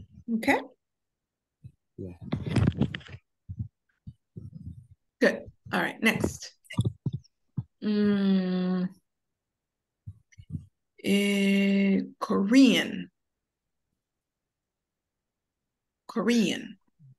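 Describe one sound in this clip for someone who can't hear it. A woman speaks over an online call, slowly and clearly, stretching out some words.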